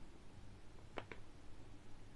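A small button clicks.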